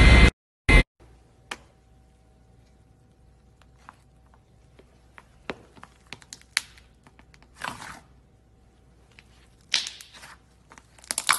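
Soft slime squishes and creaks under a hand.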